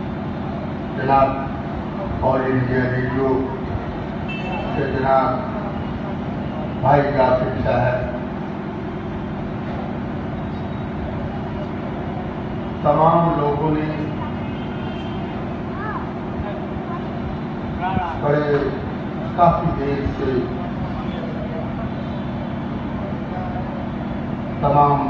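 A man speaks into a microphone through loudspeakers, in bursts with long pauses.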